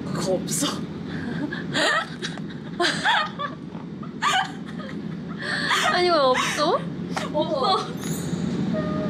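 A young woman talks and laughs brightly, heard through a playback.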